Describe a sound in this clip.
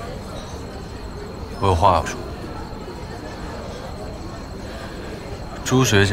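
Diners murmur softly in the background.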